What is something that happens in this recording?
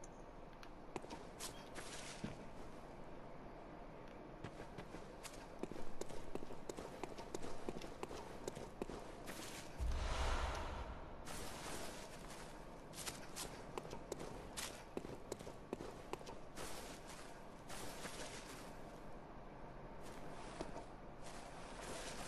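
Footsteps crunch on gravel and rustle through tall grass.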